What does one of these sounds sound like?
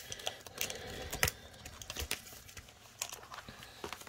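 Plastic binder pages rustle as they are flipped.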